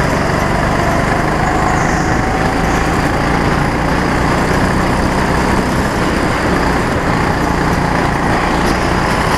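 A small engine buzzes loudly and steadily up close.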